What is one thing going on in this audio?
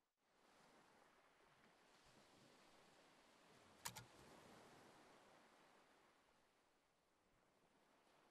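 A young man speaks quietly into a close microphone.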